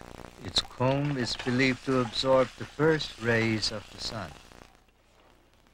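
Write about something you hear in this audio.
Food sizzles in a hot wok.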